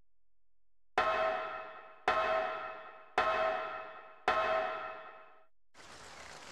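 Footsteps clang on a metal ladder rung by rung.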